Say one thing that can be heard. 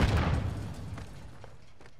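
A heavy blow thuds at close range.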